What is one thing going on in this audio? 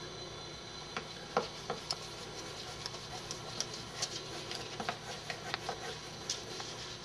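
A crayon scratches and taps on paper.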